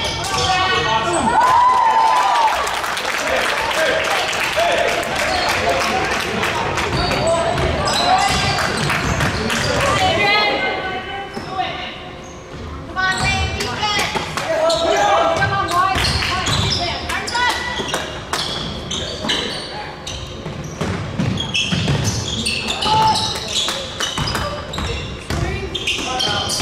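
Sneakers squeak on a hardwood court in a large echoing gym.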